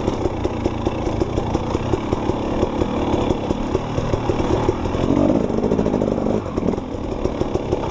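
Knobby tyres crunch over dry leaves and dirt.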